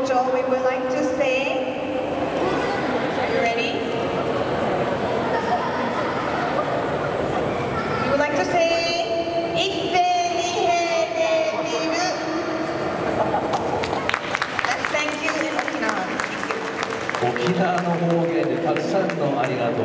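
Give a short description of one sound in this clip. A group of children and adults sing together through loudspeakers.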